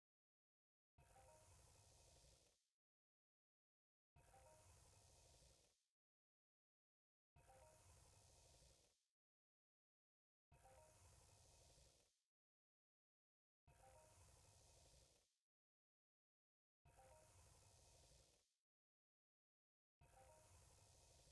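A magic spell whooshes and shimmers in short bursts, every few seconds, with silence in between.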